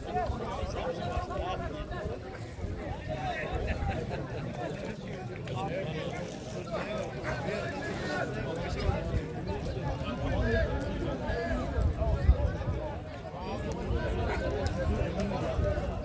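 Several men talk and chatter close by outdoors.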